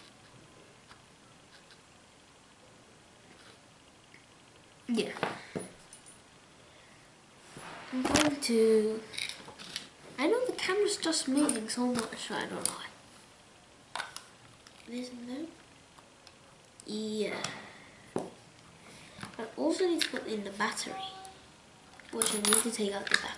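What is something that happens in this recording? Small metal parts click and tap together as hands fit them.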